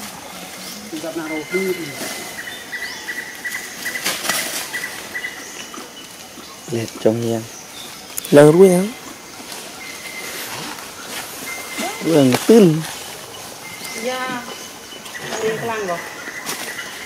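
A young monkey gives high, squeaky cries now and then.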